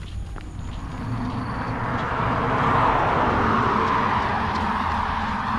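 A car passes by on a nearby road.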